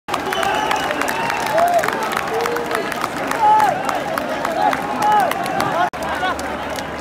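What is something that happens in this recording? Many people clap their hands in rhythm.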